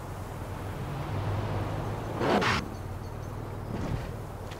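Car tyres skid and screech on a snowy road.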